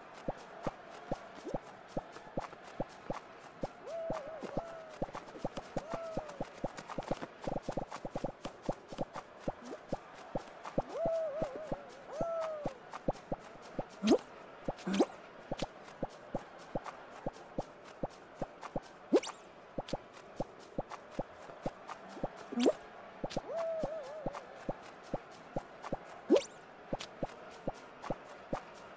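Quick light footsteps patter as a cartoon character runs.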